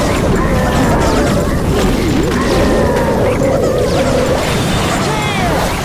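Game battle effects crackle, zap and boom without pause.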